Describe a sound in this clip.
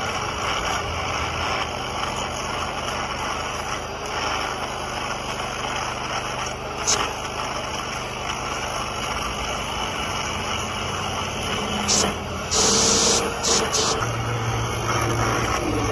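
An angle grinder screeches loudly as it cuts metal.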